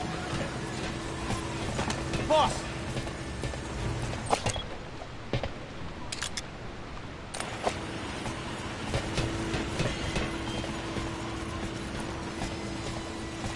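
Footsteps run across a metal deck.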